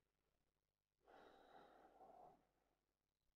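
Bedsheets rustle softly as a sleeper shifts in bed.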